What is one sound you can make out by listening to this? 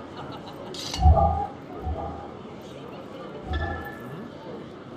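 A magic spell bursts with a deep boom.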